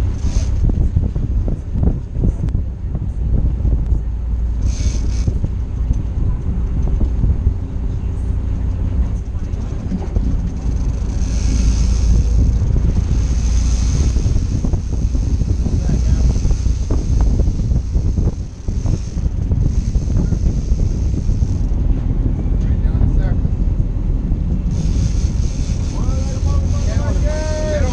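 Wind blows hard across the open sea.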